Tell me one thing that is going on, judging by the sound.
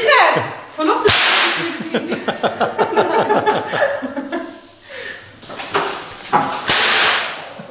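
A water pistol squirts in short hissing bursts.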